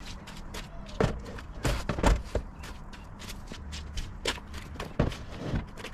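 A plastic storage box slides and knocks against a van's boot floor.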